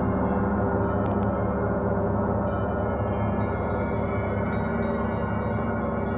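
A large gong is struck with a soft mallet and swells into a bright shimmer.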